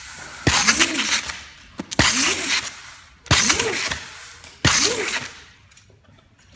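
Packing tape screeches as it is pulled off a roll in several quick bursts.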